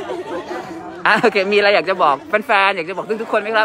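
Another woman speaks loudly and cheerfully, close by.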